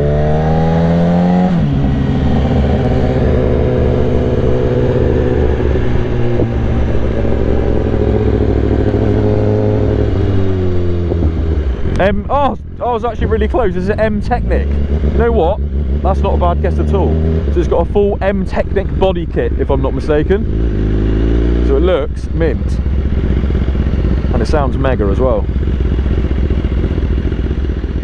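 A motorcycle engine drones steadily close by, its pitch stepping as gears change.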